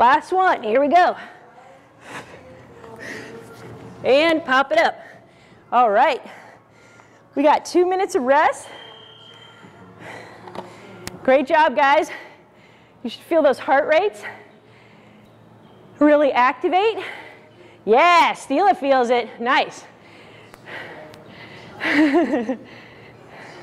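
A young woman talks clearly and with animation into a close microphone, in short bursts.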